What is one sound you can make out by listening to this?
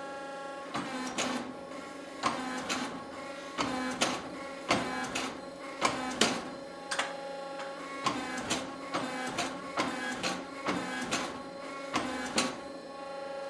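A power hammer pounds hot metal in a quick, rhythmic series of thuds.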